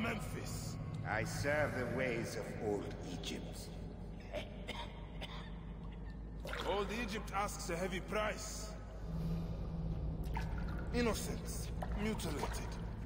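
A man speaks in a deep, calm voice.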